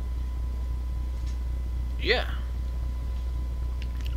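A metal lock clicks open.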